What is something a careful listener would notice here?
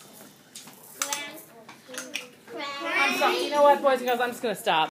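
Young children speak and sing nearby.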